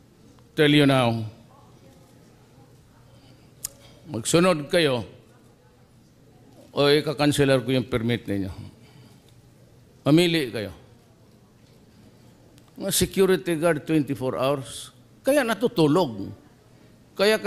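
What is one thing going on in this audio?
An older man speaks slowly into a microphone, in short phrases with pauses.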